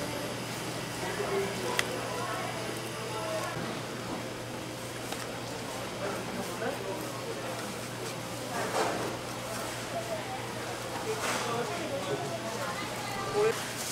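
A knife cuts and scrapes through cooked meat.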